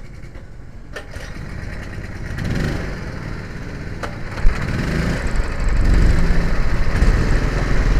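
A small kart engine rumbles and grows louder.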